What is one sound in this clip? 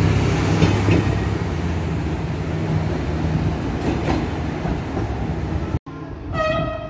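A train rumbles loudly as it pulls along the platform.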